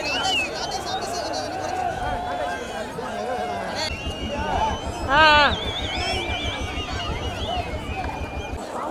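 A large crowd shouts and cheers outdoors.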